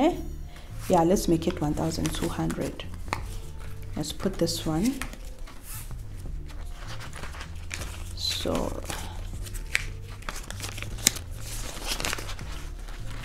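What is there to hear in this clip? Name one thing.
Plastic bags of banknotes rustle and crinkle as they are handled.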